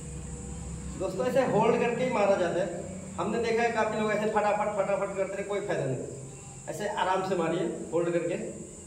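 A man talks with effort, close by.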